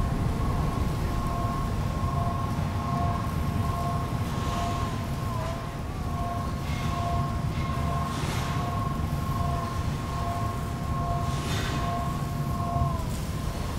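Machinery hums with a steady low drone.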